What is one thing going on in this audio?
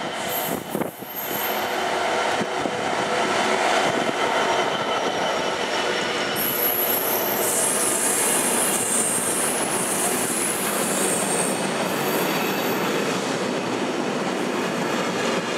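A long freight train's wheels clatter and squeal along the rails.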